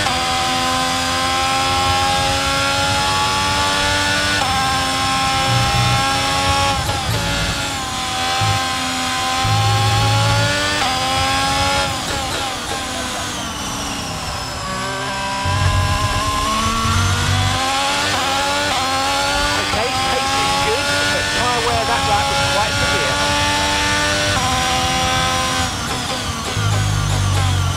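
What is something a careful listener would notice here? A Formula One car engine screams in a video game, shifting up through the gears as it accelerates.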